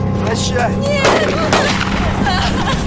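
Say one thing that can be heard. A pistol fires a sharp shot.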